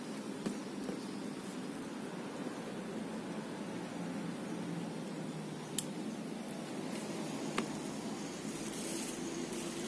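Leaves rustle softly as a hand handles bean pods.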